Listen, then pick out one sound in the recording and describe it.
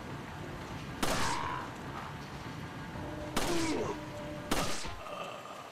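Pistol shots ring out sharply.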